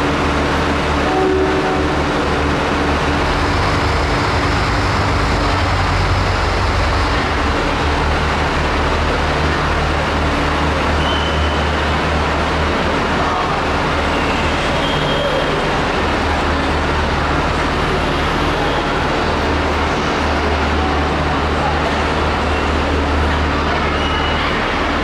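A diesel train engine rumbles steadily under a large echoing roof.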